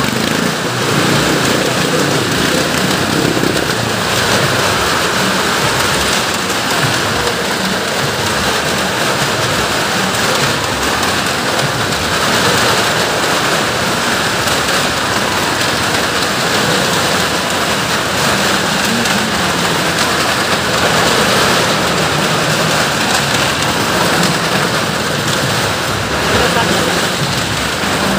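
Car engines roar loudly, echoing in an enclosed space.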